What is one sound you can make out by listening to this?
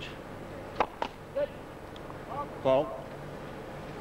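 A tennis ball is struck sharply by a racket.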